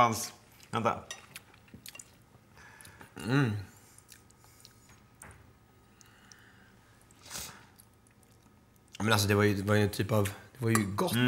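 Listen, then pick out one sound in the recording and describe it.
A man speaks with animation close to a clip-on microphone.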